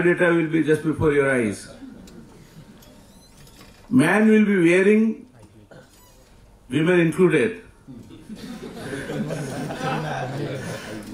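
An older man speaks slowly through a microphone in a large hall, pausing between phrases.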